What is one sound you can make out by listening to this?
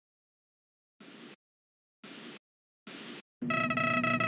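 Harsh bursts of static hiss crackle three times.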